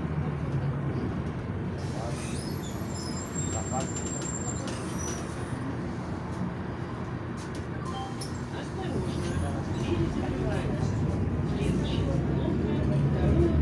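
A vehicle's engine rumbles steadily from inside as it drives along.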